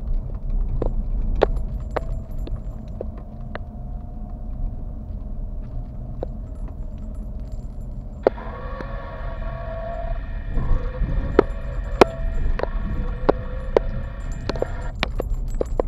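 A car's interior rattles and knocks over bumps in a rough road.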